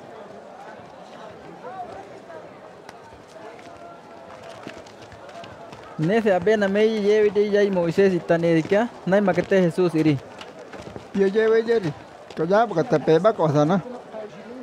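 A crowd murmurs softly in the background.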